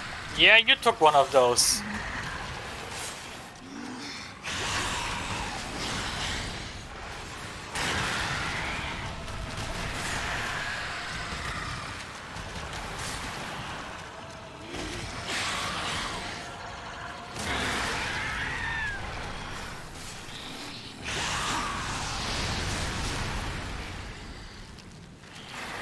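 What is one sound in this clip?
Sword blows clang and slash.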